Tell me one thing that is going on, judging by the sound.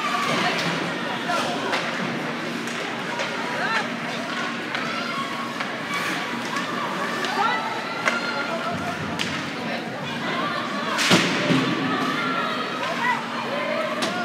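Hockey sticks and a puck clack sharply.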